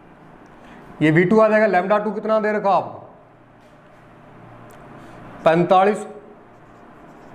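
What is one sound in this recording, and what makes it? A young man speaks clearly and with animation, close by.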